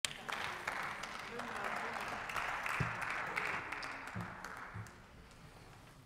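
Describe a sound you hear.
Scattered applause rings through a large hall and dies away.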